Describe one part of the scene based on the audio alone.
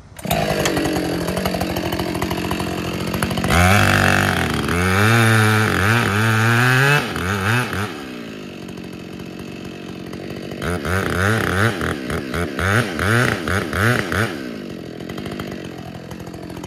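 A chainsaw engine idles and revs hard in bursts while cutting wood.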